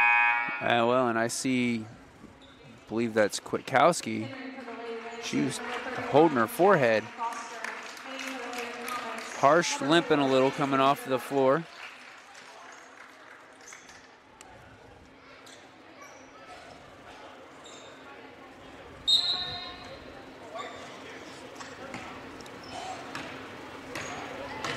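A crowd murmurs in a large echoing gym.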